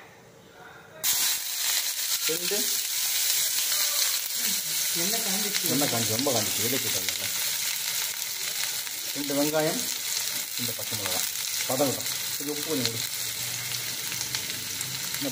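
Onions sizzle and crackle in hot oil in a pan.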